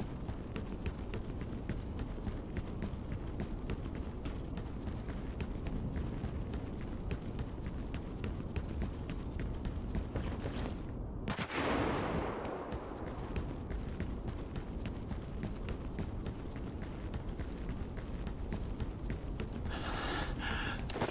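Footsteps run quickly over hard ground and grass.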